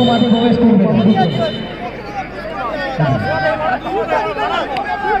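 Young men talk and shout with animation nearby, outdoors.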